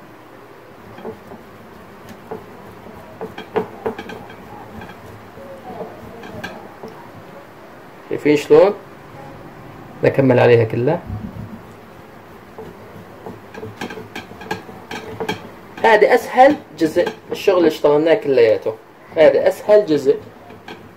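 Cheese rasps against a metal grater in quick strokes.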